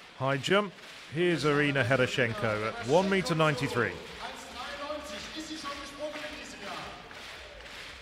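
A man announces loudly through a microphone and loudspeakers in a large echoing hall.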